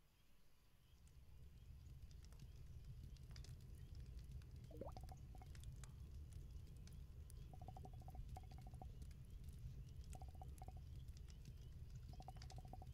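A campfire crackles and roars steadily.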